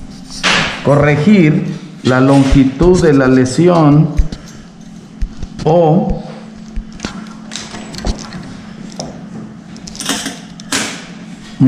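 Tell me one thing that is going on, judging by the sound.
A screwdriver scrapes as it turns a screw.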